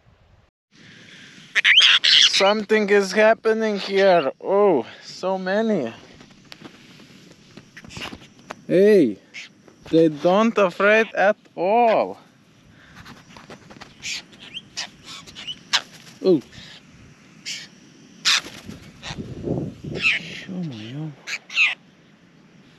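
Birds chirp and call nearby.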